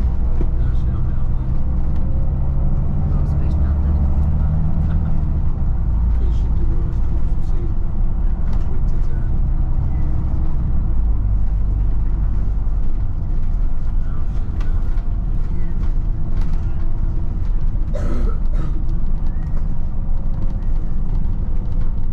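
A vehicle engine rumbles steadily as it drives along.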